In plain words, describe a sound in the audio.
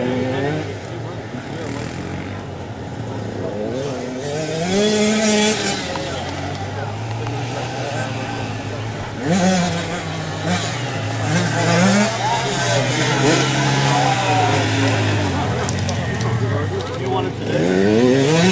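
Small dirt bike engines buzz and rev up and down.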